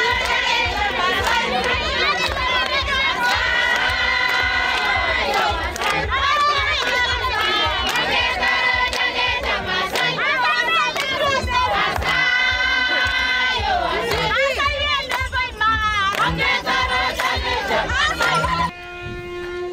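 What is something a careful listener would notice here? A crowd of women sings loudly together outdoors.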